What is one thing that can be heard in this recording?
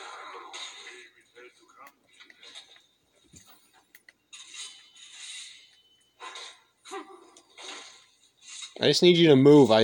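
Video game fight sounds of whooshes and hits play from a television.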